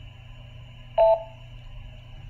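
A handheld radio beeps.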